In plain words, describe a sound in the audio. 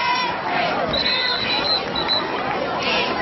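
A referee's whistle blows shrilly several times.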